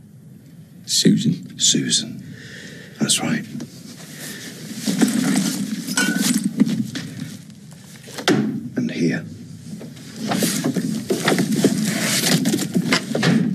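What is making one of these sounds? A second middle-aged man answers in a low, subdued voice.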